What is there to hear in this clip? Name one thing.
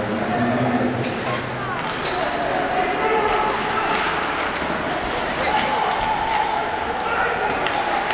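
Skates scrape and hiss across ice in a large echoing arena.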